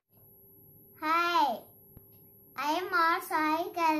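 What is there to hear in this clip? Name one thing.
A young boy speaks loudly in a sing-song voice close by.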